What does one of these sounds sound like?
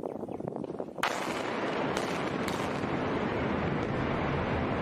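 Explosive charges bang in quick succession.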